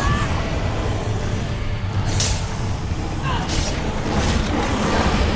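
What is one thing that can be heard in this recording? A sword clashes against bony armour in quick blows.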